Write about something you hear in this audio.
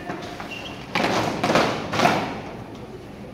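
Many feet stamp on a hard floor in unison.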